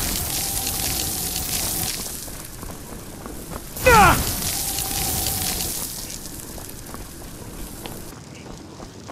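Magic crackles and hisses steadily.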